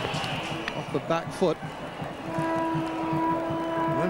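A large crowd cheers and chatters in a stadium.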